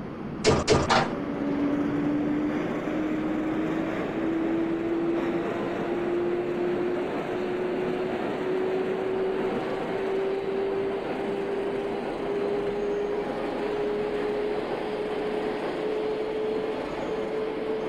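A train's electric motor whines, rising slowly in pitch as the train speeds up.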